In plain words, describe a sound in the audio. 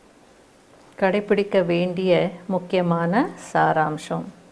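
A woman sings in a long, sustained melody.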